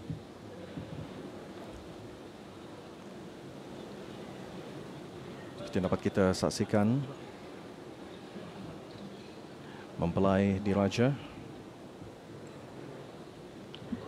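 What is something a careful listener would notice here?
A large crowd murmurs softly in a big echoing hall.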